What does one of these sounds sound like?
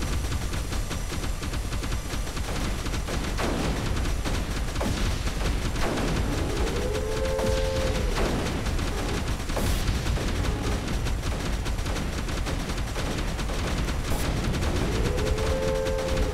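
Electronic game effects whoosh and chime.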